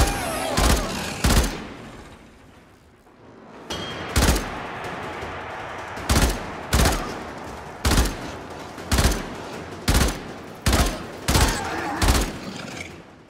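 A rifle fires single loud shots that echo.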